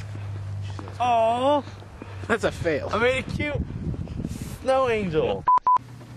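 A young man speaks outdoors.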